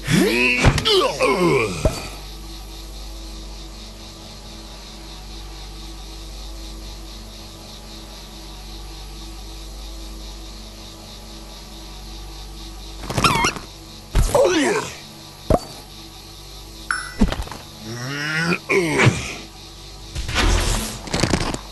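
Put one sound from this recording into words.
Steady electronic game music plays.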